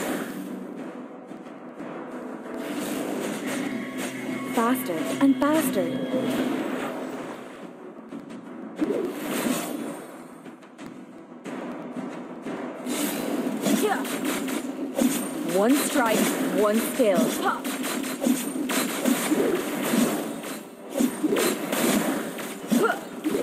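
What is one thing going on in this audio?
Game spell effects whoosh and crackle as a hero attacks.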